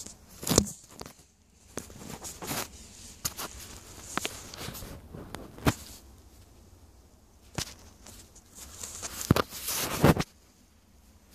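A small hand tool scrapes and digs into loose dirt.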